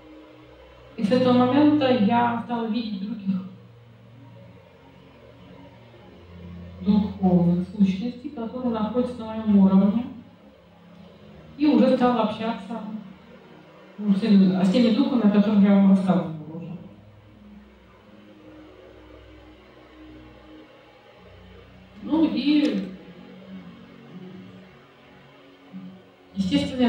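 A woman speaks calmly into a microphone, in pauses.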